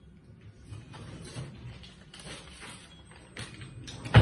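Paper rustles as it is waved.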